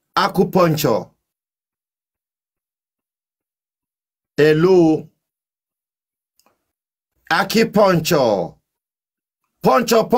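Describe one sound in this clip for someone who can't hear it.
A man speaks in short bursts with pauses, close to a microphone.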